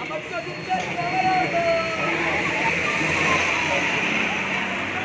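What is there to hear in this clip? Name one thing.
A crowd of marchers chants slogans loudly outdoors.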